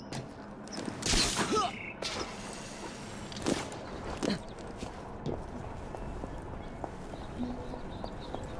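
Footsteps patter quickly across a roof.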